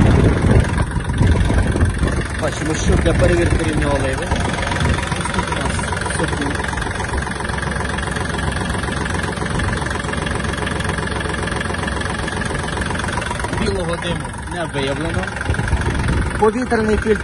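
A small diesel tractor engine idles.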